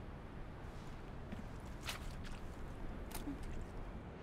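Footsteps crunch on rough ground.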